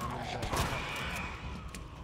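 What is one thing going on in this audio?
A gunshot bangs sharply.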